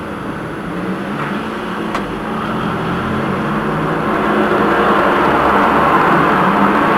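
A tram rumbles steadily along its rails, slowly growing louder.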